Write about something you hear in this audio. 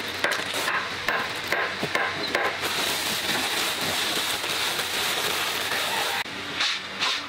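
A plastic sack crinkles and rustles.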